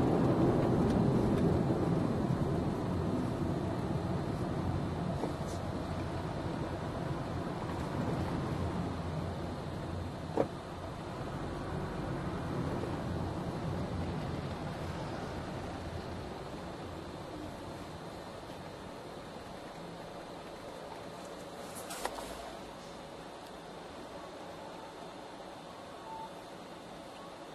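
A car engine hums steadily from inside as the car drives along, then quiets as it slows to a stop.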